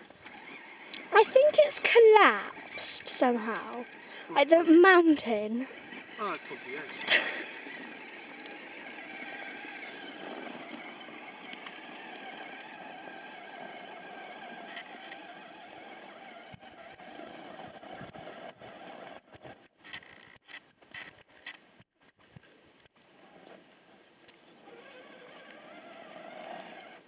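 A small electric motor whirs steadily.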